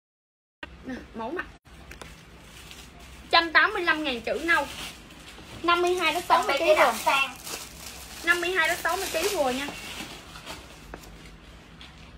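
Fabric rustles as clothes are handled.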